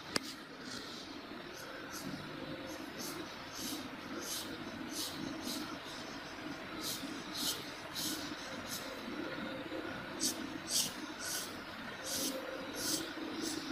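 A pencil scratches and sketches on paper in short strokes.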